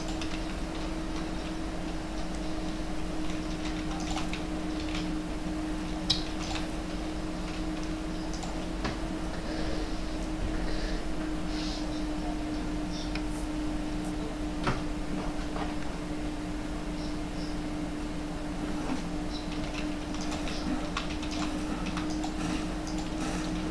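Wooden walls and ramps clack into place in quick bursts.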